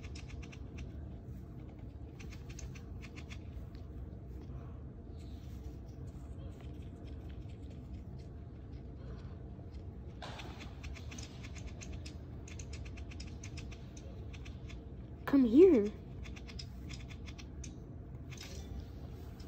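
Fingers tap rapidly on a touchscreen.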